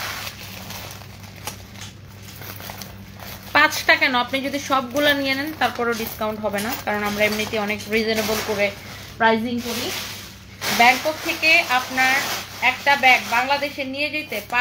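Sequins rustle and scrape as a bag is handled.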